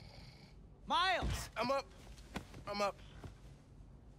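A young man mumbles sleepily.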